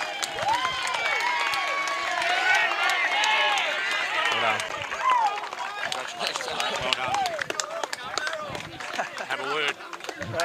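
A small crowd claps and applauds outdoors.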